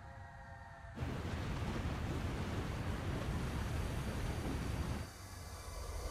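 Water roars as it pours down a waterfall.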